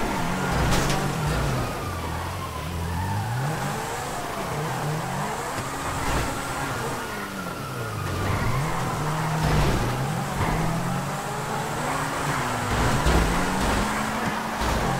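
A sports car engine revs up and down, roaring loudly.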